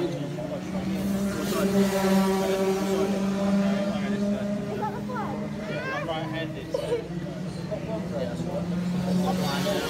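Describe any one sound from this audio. A kart engine idles nearby with a steady buzzing drone.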